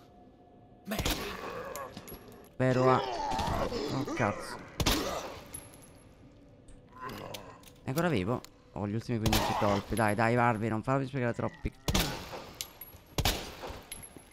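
A pistol fires sharp single shots in a large echoing hall.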